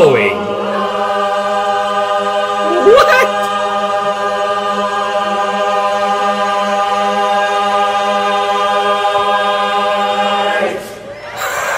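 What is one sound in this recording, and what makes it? A large choir holds a long, rich chord.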